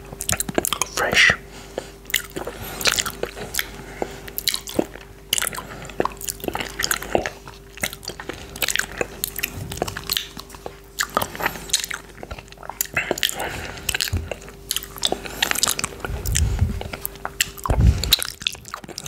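A man sips yoghurt from a plastic cup close to a microphone.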